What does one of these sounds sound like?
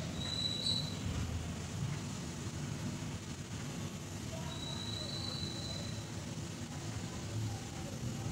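A plastic ruler clicks and slides on paper.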